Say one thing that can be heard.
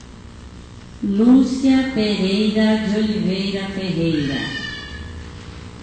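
A woman sings through a loudspeaker in a large hall.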